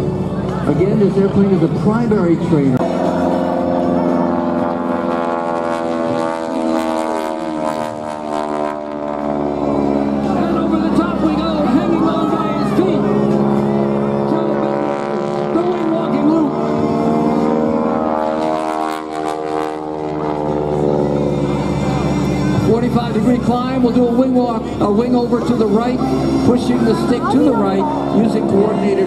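A small propeller plane's engine drones and roars overhead.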